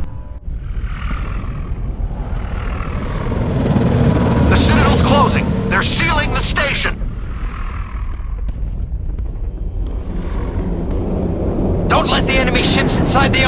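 Spacecraft engines rumble deeply as ships fly past.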